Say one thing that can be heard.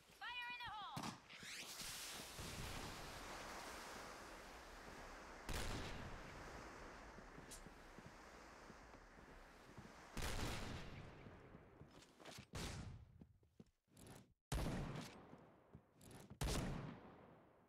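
Loud gunshots bang and echo.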